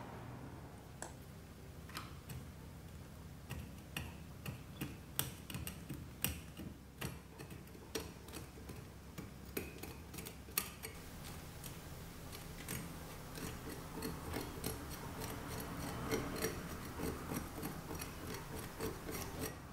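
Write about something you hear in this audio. A metal pick scratches and taps at dry roots and soil, close by.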